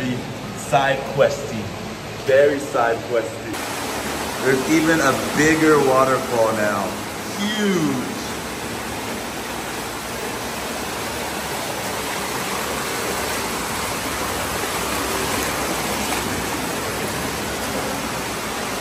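Water rushes and splashes down a small waterfall.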